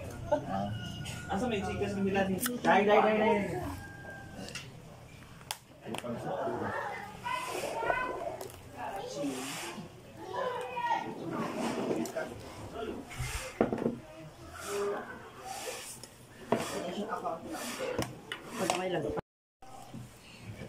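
Women talk and chat casually nearby.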